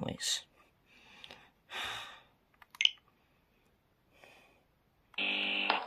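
Buttons on a game controller click.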